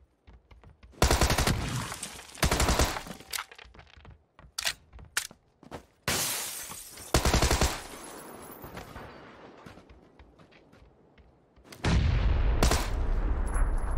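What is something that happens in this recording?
Loud gunshots fire in bursts in a video game.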